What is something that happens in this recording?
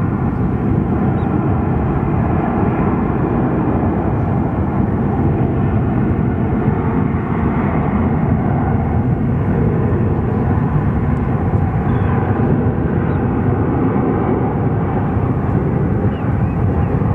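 A jet airliner's engines roar steadily as it rolls along a distant runway.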